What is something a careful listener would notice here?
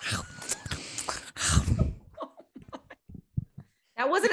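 Several young women laugh over an online call.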